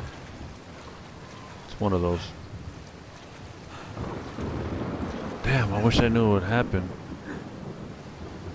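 Rough sea waves surge and crash steadily.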